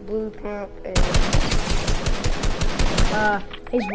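A gun fires in a rapid burst.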